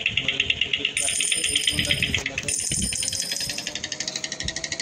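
Coins chime as they are collected.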